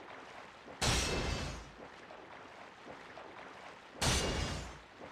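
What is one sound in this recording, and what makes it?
Water splashes loudly as a swimmer strokes through it.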